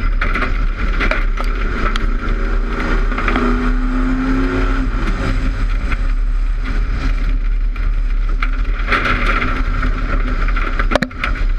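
A race car engine roars loudly up close, rising and falling in pitch.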